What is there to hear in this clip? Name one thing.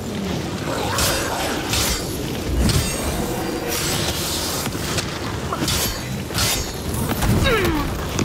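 Fiery explosions burst and roar.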